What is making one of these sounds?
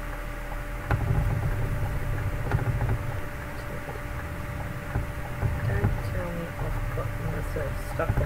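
A truck engine rumbles louder as it speeds up.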